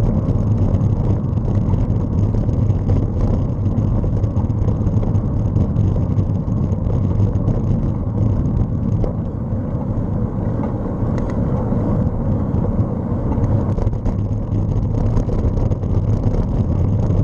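A bicycle rattles over the road surface.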